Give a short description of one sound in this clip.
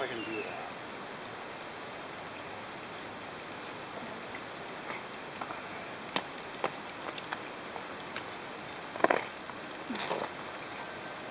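A plastic hoop clicks and rattles as it spins.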